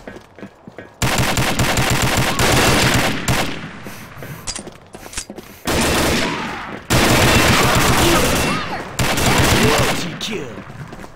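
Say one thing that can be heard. A rifle fires rapid, loud bursts of shots.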